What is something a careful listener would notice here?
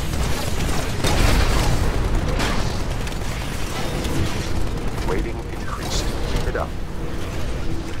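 An explosion blasts nearby.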